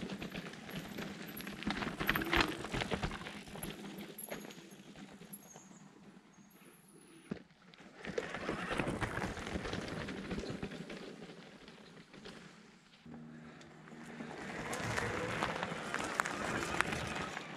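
Mountain bike tyres crunch and rattle over a dirt trail as a bike rides past close by.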